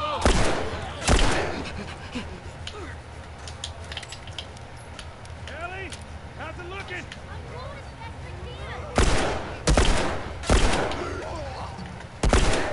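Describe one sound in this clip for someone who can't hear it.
Gunshots from a pistol ring out loudly, several times.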